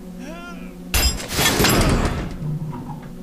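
A crowbar forces open a wooden door with a loud crack and creak.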